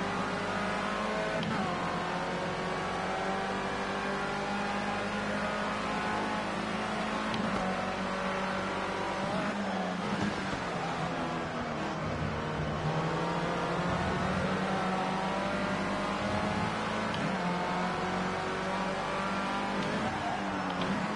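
A racing car engine screams at high revs, its pitch rising and falling with gear changes and braking.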